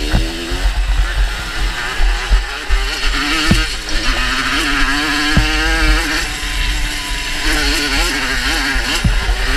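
Wind buffets against the rider.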